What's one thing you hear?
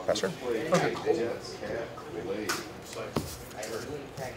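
Playing cards shuffle and slap softly in hands.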